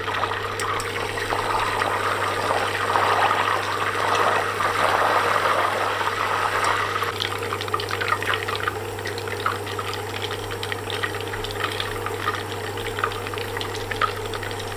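A spatula scrapes softly against a metal pan.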